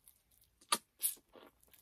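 A man chews noisily.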